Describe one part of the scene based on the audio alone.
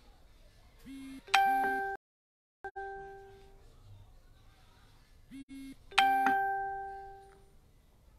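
A phone notification chime rings out twice, ringing briefly before fading.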